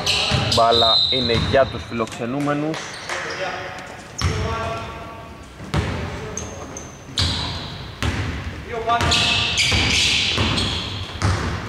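Players' sneakers squeak sharply on a wooden floor in a large echoing hall.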